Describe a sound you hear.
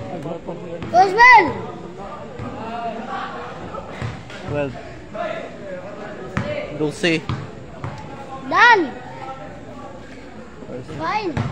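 Sneakers squeak on a court.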